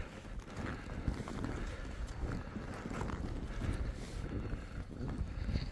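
Skis carve and scrape over soft snow.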